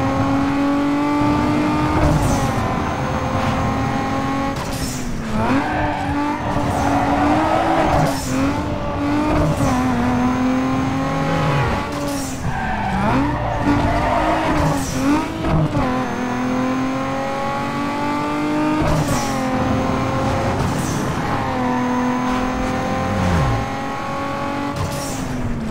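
A V6 sports car engine revs hard, climbing and dropping through gear changes.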